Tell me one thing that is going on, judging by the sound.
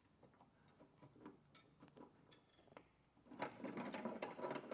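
A hand riveter clicks and snaps as a rivet is squeezed and set.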